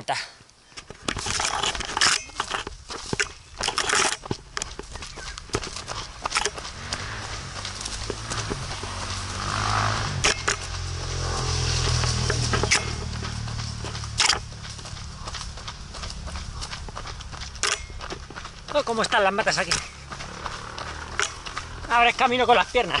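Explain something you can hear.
Running footsteps crunch on a dirt trail.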